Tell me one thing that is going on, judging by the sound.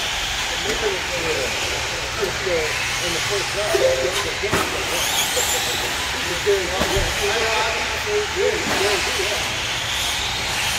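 Small remote-control car motors whine, rising and falling in pitch, in a large echoing hall.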